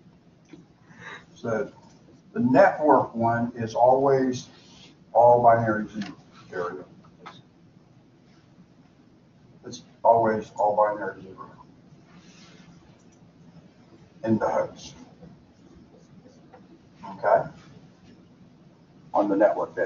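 An elderly man speaks calmly, in short phrases with pauses.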